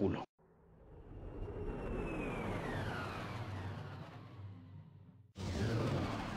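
A spaceship engine roars as the craft streaks past with a falling whoosh.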